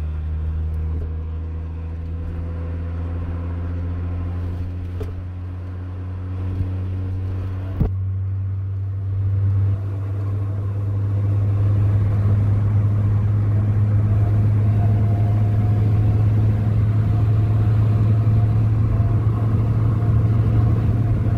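Tyres roar on the road surface, growing louder as the car speeds up.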